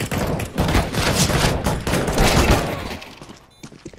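A knife slashes and stabs with a wet thud.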